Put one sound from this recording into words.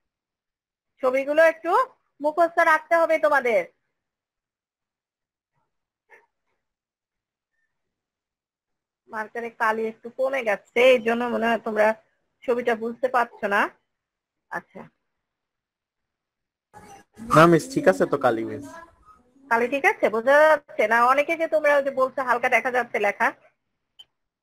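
A woman speaks calmly, explaining, heard through an online call.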